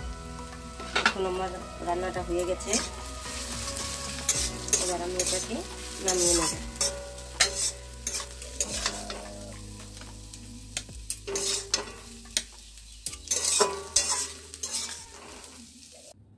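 A metal spatula scrapes and clatters against a wok.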